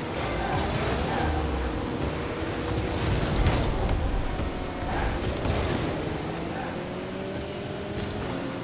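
Game car engines hum steadily.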